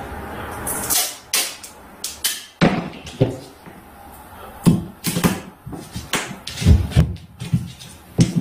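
Hands knock and rub as they press tape down against a board.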